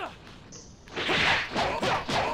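A heavy blow lands with a loud impact.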